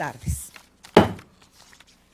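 A gavel strikes a wooden desk once.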